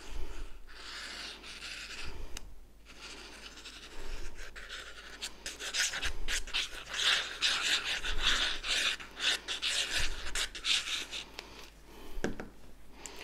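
Stiff paper rustles and scrapes as it is handled.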